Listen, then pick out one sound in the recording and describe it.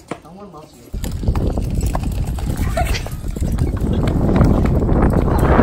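A wagon's wheels rumble loudly over pavement.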